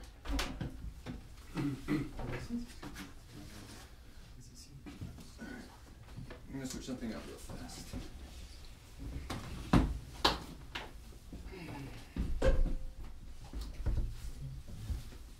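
A saxophone's keys are clicked and tapped.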